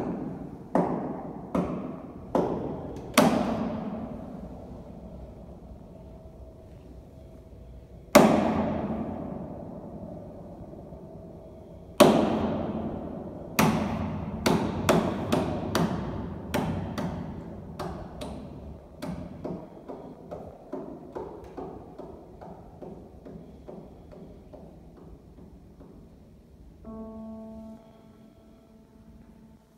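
A grand piano plays slow, ringing chords and notes that fade, with long pauses between them.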